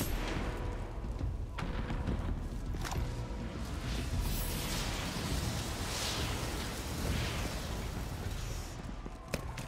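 Fire roars and crackles nearby.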